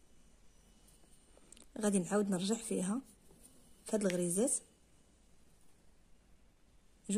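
A needle pulls thread through soft fabric.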